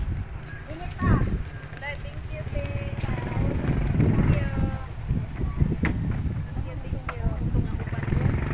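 Women talk with each other nearby.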